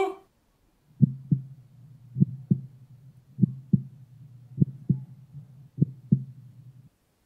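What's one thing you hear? A hand pats a man's head.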